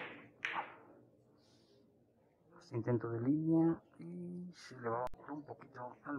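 A cue tip strikes a billiard ball.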